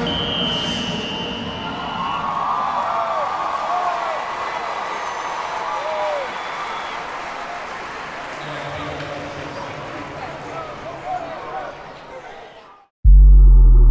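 A large crowd murmurs and cheers in an echoing stadium.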